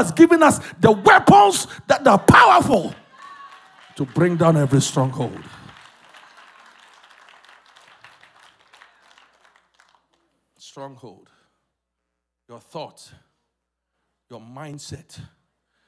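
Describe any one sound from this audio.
A man preaches passionately into a microphone, his voice echoing in a large hall.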